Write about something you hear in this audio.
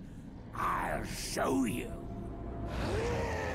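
A creature snarls and speaks in a harsh, deep voice.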